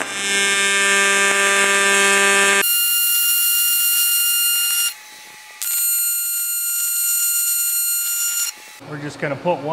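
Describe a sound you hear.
A welding arc buzzes with a steady, high hum.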